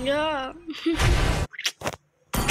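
Sound effects of a fight crash and whoosh.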